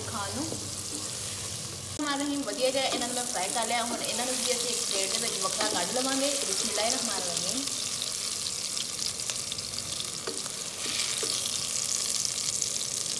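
Hot oil sizzles and crackles steadily in a pan.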